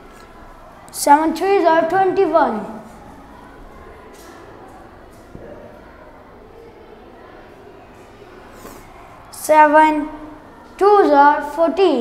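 A boy speaks up loudly and clearly.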